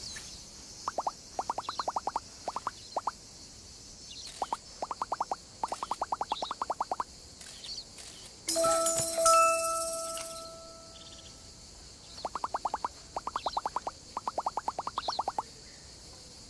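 Rapid electronic blips sound as a cartoon character talks.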